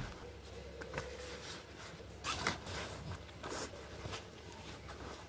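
Fabric rustles as a bag is handled.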